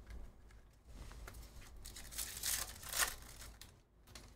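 A foil wrapper crinkles and tears as a card pack is opened.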